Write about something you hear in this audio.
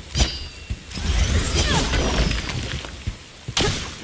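A powerful energy blast roars and crackles.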